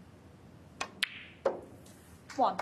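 A cue tip strikes a snooker ball with a sharp click.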